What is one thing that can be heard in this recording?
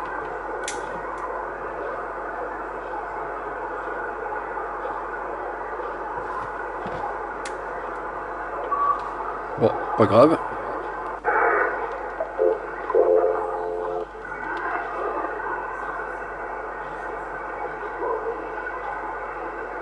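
Static hisses from a radio speaker.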